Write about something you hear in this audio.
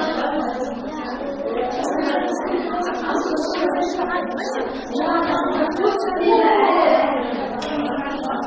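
A woman speaks up over the chatter.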